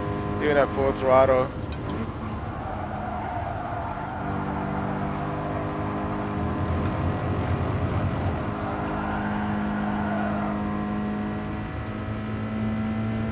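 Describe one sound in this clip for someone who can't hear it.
A race car engine hums steadily and changes pitch as the car shifts gears.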